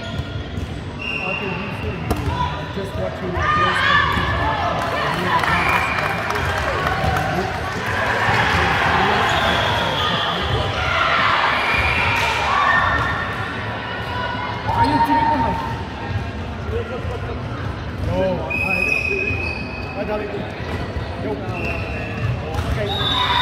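Sneakers squeak on a hard floor.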